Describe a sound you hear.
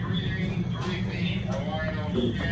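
An elevator button clicks once.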